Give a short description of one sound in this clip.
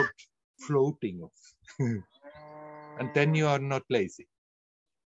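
An elderly man laughs heartily over an online call.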